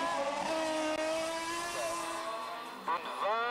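A racing car engine roars past at high revs.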